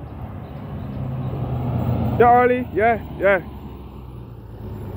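A bus drives past with a low engine rumble.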